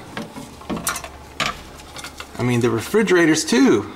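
A plastic tray clatters as it is lifted and turned.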